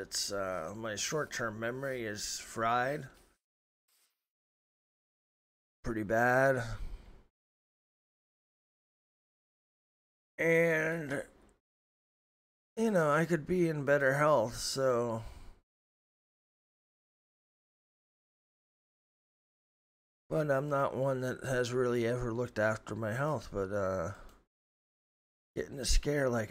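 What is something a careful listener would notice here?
A man talks with animation into a close microphone, in bursts with pauses.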